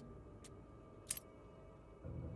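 A metal latch snaps open with a clack.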